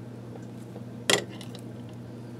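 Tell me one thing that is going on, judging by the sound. A plastic pen is set down on a table with a click.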